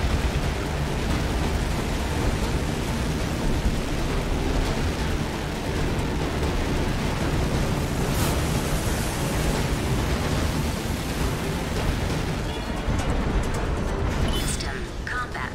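A mech's thrusters roar steadily as it boosts along.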